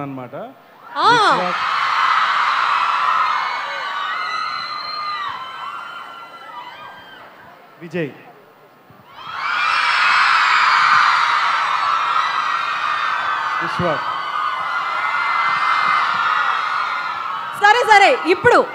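A large crowd of young women cheers and screams loudly.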